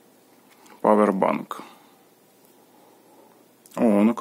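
A cable plug clicks into a socket.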